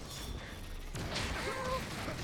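Metal clashes and sparks crackle as blows strike a robot.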